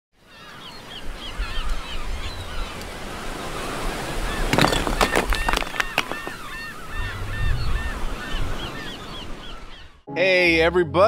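Waves wash up onto the shore.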